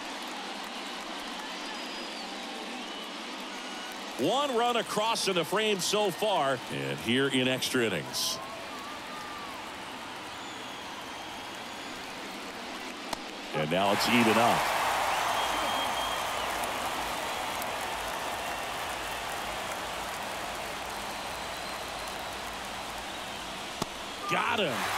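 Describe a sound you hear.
A large stadium crowd murmurs steadily.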